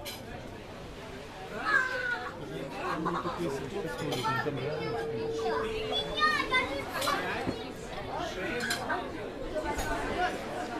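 Many men and women talk and murmur in a crowd outdoors.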